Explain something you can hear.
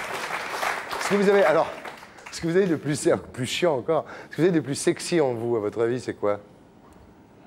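A man speaks cheerfully close to a microphone.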